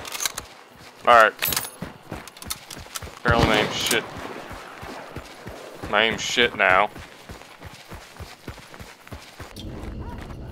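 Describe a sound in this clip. Footsteps crunch steadily over dry ground and grass.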